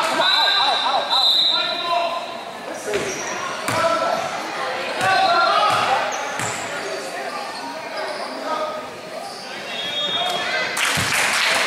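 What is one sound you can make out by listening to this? Sneakers squeak on a wooden court.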